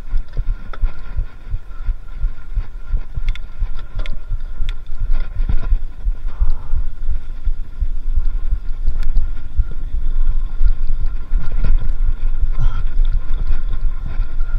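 A bicycle frame rattles and clicks over bumps.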